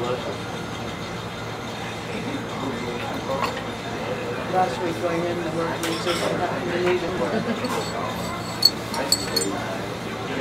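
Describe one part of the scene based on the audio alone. A spoon stirs and clinks against a small cup.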